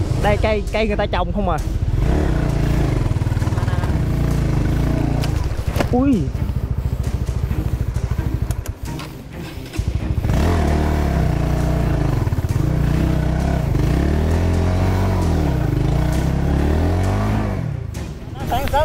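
A motorbike engine rumbles steadily, its pitch rising and falling as it rides.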